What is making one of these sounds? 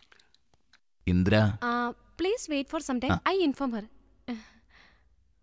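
A man speaks warmly and playfully, close by.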